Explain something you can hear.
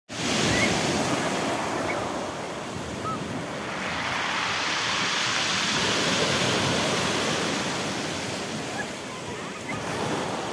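Waves break and wash over pebbles close by.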